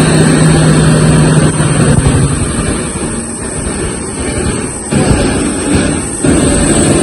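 A jet airliner's engines roar loudly as the airliner taxis slowly past.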